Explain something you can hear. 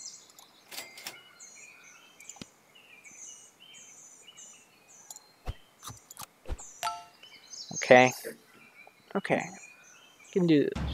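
Short game sound effects click and chime.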